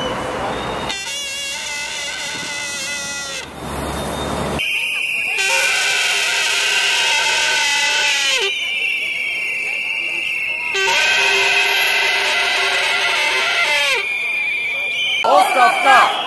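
A large crowd sings together outdoors.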